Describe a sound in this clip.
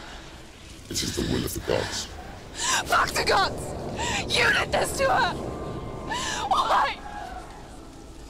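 A young woman cries out in anguish.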